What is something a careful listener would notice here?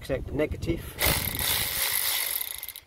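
A cordless power ratchet whirs as it spins a nut.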